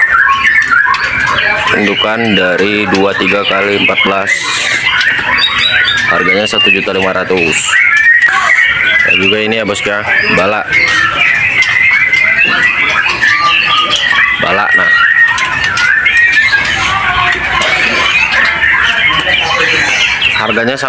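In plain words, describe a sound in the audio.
Many small birds chirp and twitter busily, close by.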